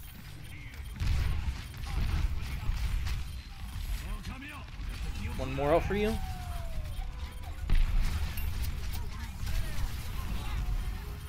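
Guns fire in rapid bursts with heavy thumps.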